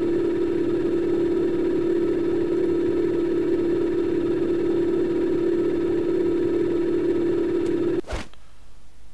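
A machine hums steadily and loudly.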